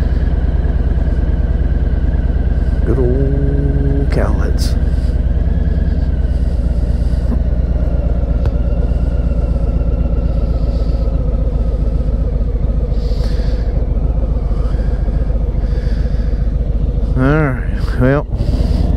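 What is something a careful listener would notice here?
A motorcycle engine idles with a steady low throb.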